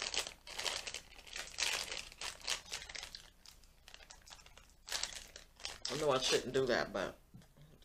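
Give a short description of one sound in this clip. A woman chews food loudly.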